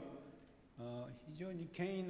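An elderly man coughs.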